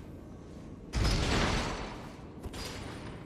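A heavy lever is pulled with a loud clunk.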